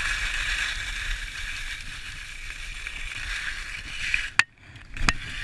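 Skis hiss and scrape over packed snow.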